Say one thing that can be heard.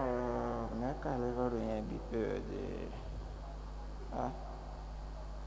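A young man sings through a microphone.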